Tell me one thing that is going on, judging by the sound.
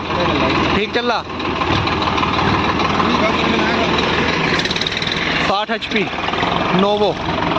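A diesel tractor engine labours under load, pulling a harrow.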